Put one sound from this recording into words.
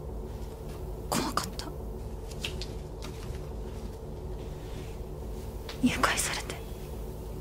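A young woman speaks softly and fearfully.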